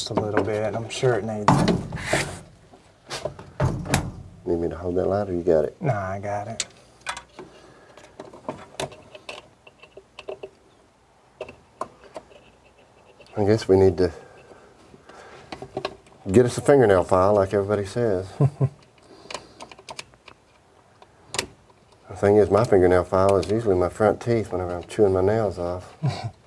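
Metal tools click and tap against an engine.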